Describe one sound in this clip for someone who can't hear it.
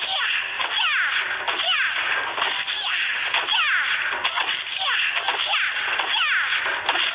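Quick whooshing slashes cut through bamboo stalks again and again.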